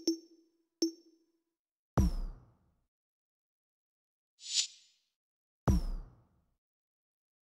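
Short game menu sound effects click and whoosh as selections change.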